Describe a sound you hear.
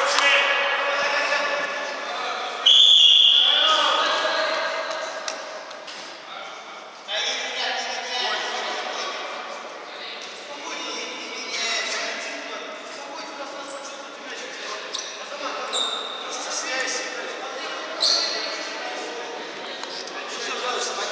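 Men shout and call out across an echoing sports hall.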